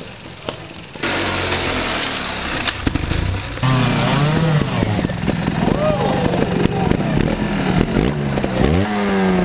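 A trials motorcycle engine revs in sharp bursts as it climbs over rocks.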